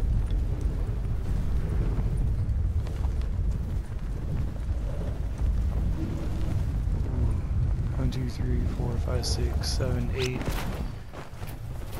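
Wind rushes loudly past a falling skydiver.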